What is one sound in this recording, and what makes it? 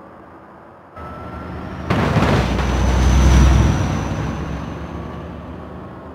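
A heavy truck engine roars as it drives close by.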